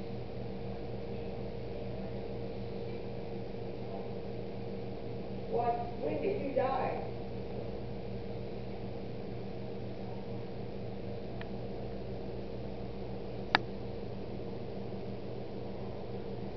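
A refrigerator hums steadily.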